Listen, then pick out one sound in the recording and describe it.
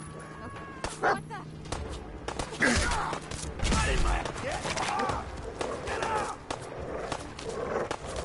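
A dog snarls and growls while attacking.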